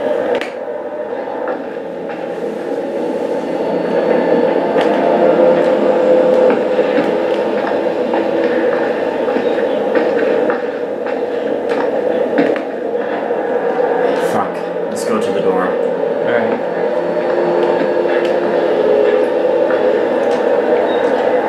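Footsteps creak across a wooden floor.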